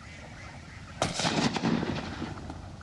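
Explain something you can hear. A shotgun fires a loud shot outdoors.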